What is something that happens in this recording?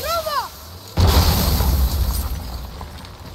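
A magic blast bursts with a crackling whoosh.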